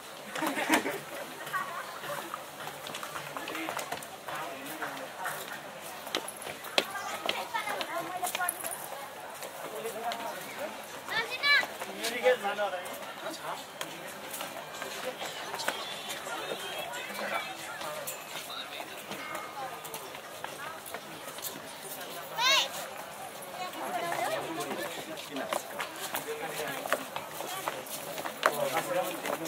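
Footsteps shuffle on stone steps outdoors.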